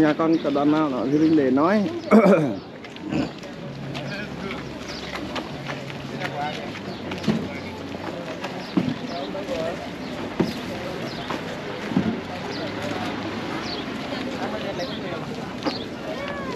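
A crowd of people talks in a low murmur outdoors.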